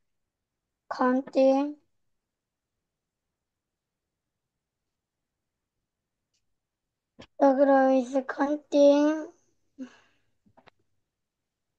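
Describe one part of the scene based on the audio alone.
A woman speaks clearly and slowly through an online call, in short phrases.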